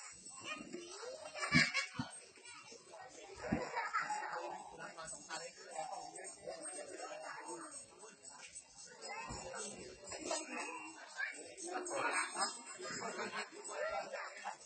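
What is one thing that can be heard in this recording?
A crowd of men and women talks and calls out nearby, outdoors.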